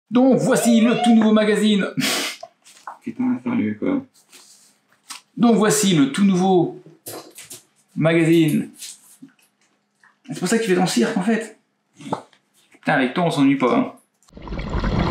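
A man talks to the listener close by, with animation.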